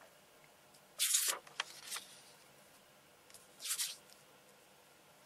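A sheet of paper rustles and slides as a hand moves it.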